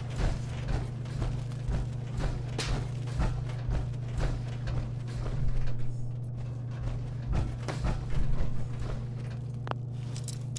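Heavy footsteps in power armor thud across a floor.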